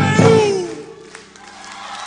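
A band plays loud music on stage.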